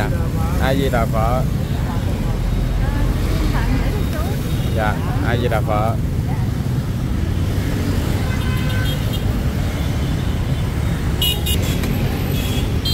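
Motorbike engines hum steadily in busy street traffic nearby.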